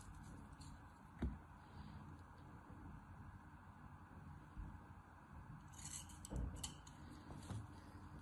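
A plastic tool scrapes softly against sand in a plastic cup.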